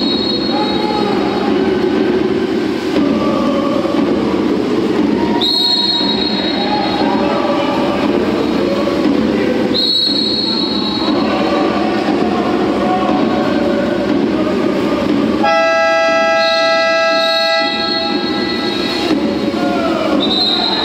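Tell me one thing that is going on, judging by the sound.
Swimmers splash and thrash in the water of an echoing indoor pool.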